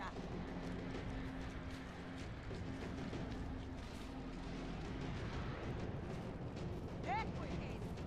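Hands scrape and grip on rock during a climb.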